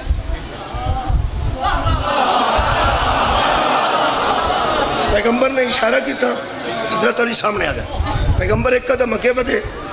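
A middle-aged man speaks forcefully into a microphone, heard through loudspeakers.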